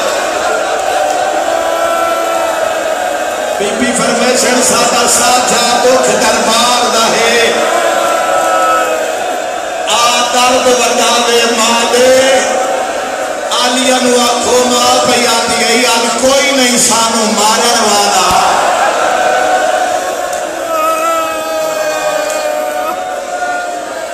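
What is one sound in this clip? A man chants loudly through a microphone and loudspeakers in a reverberant hall.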